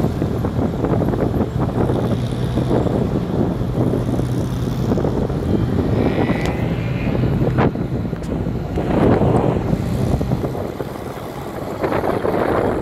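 A car engine rumbles and crackles steadily up close.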